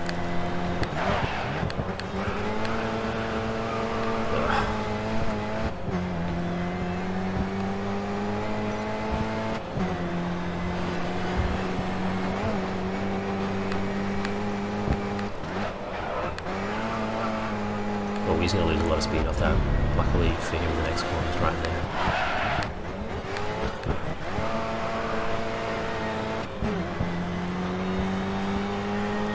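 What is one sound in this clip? A racing car engine roars steadily, rising in pitch through each gear and dropping sharply at each shift.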